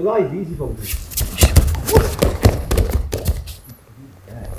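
A body thuds onto a padded mat.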